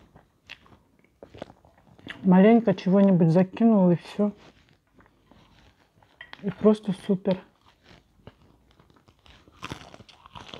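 Crispy fried food crunches and crackles with handling and chewing.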